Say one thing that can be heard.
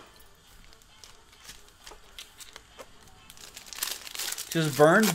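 Card packs rustle and click as hands shuffle them.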